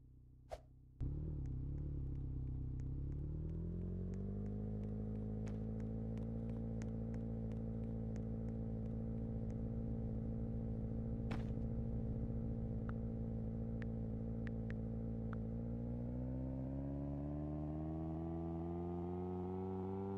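A car engine drones steadily and then revs higher.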